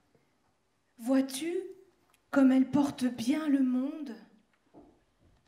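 A young woman sings into a microphone.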